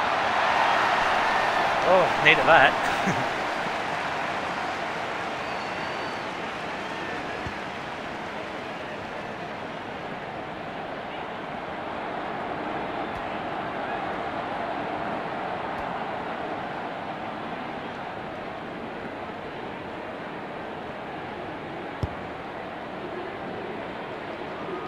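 A large stadium crowd roars steadily, loudest at the start.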